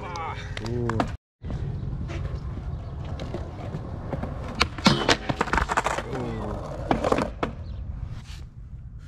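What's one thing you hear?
Skateboard wheels roll and rumble over concrete outdoors.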